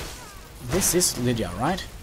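Metal weapons clash.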